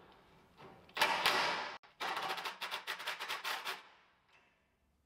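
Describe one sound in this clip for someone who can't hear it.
A cordless impact driver rattles in short bursts.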